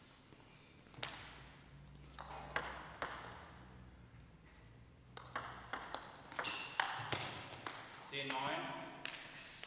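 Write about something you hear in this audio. A table tennis ball clicks sharply on paddles and the table in a quick rally, echoing in a large hall.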